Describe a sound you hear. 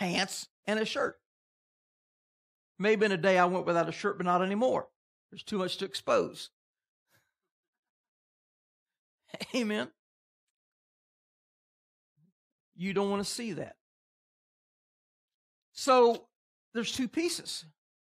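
An elderly man speaks with animation in short phrases with pauses.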